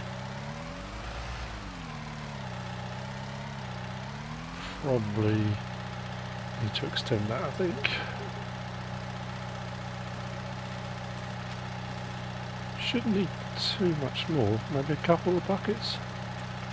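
A diesel engine hums steadily.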